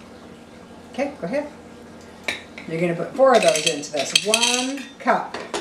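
An older woman speaks calmly and cheerfully nearby.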